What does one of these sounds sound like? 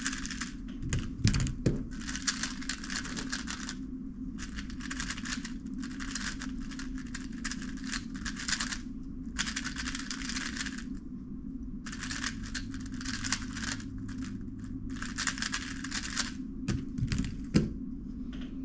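A puzzle cube knocks down onto a table.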